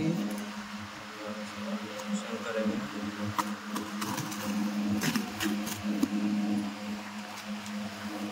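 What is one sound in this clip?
A key scrapes and tears through packing tape on a cardboard box.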